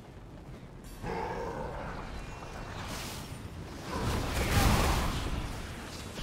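Spell effects whoosh and crackle as game characters fight.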